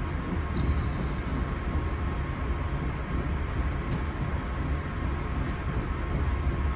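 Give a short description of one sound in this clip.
A train rumbles steadily along the tracks, heard from inside.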